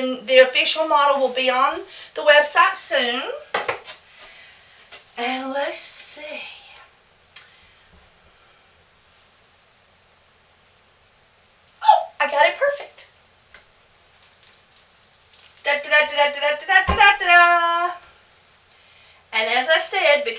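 A middle-aged woman talks with animation close by, pausing now and then.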